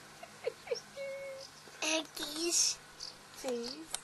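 A toddler laughs up close.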